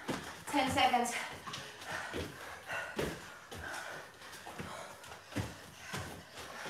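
Feet land with thuds on exercise mats.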